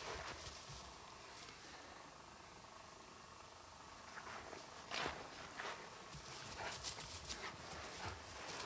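A dog's paws rustle and thud on grass.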